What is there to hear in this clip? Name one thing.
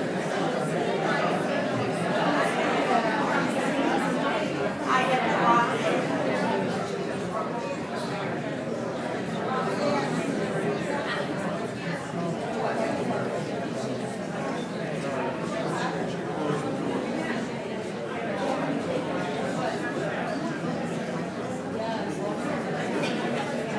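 A seated crowd of men and women murmurs quietly in an echoing hall.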